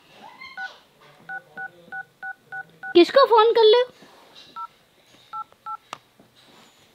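A phone beeps as a toddler taps it.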